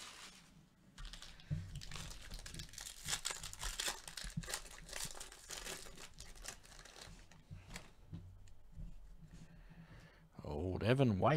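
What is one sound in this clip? Foil wrappers crinkle and tear up close.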